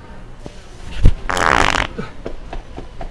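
A rubber plunger squelches and pops off a hard floor.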